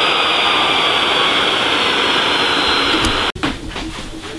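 A jet engine roars steadily nearby.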